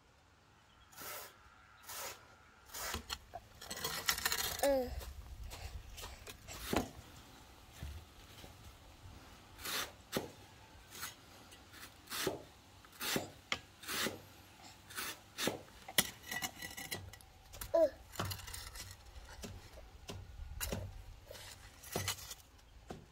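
A hoe chops into dry soil with dull thuds.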